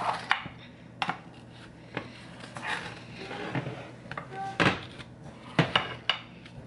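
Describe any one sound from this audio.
A knife clicks against a glass dish.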